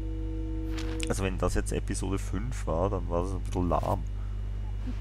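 A man talks close to a headset microphone.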